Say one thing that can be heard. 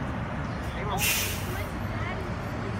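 Air brakes on a bus hiss sharply.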